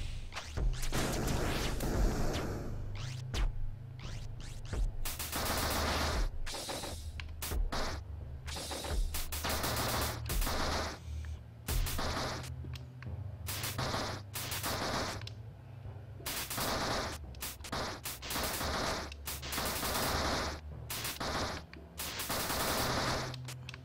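Electronic game music plays steadily.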